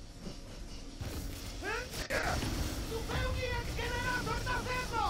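A crackling energy blast whooshes loudly.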